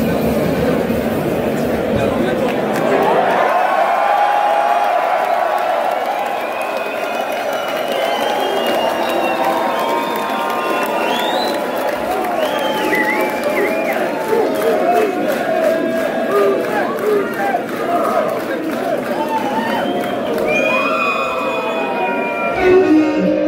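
A large crowd chatters and calls out loudly in a big echoing hall.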